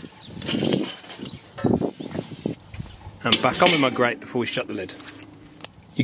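A metal grill grate clanks into place.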